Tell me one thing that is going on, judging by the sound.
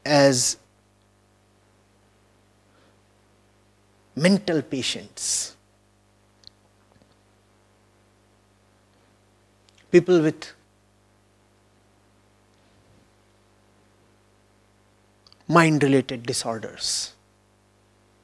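A man speaks calmly into a microphone in short bursts with pauses.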